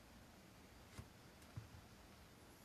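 A brush clicks against a small paint pot.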